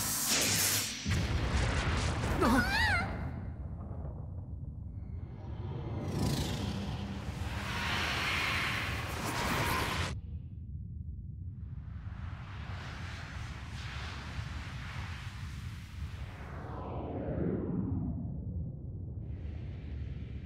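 A deep rumbling blast roars.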